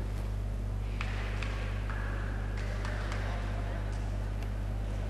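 A young woman talks quietly.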